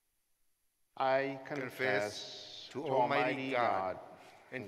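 A man chants a prayer through a microphone in an echoing room.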